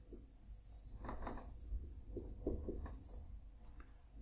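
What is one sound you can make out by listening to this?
A marker squeaks across a whiteboard in short strokes.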